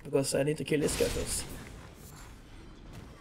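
A magical burst flares with a soft whoosh.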